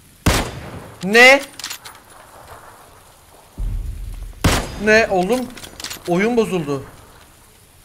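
A young man exclaims loudly into a close microphone.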